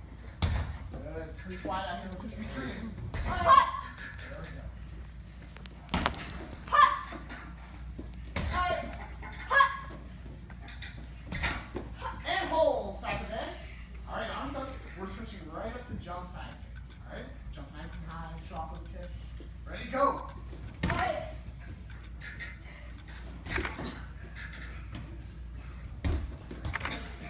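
Bare feet thump on padded mats during kicks and stances.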